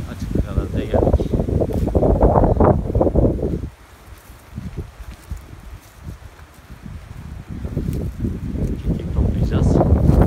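Footsteps crunch on dry grass and twigs.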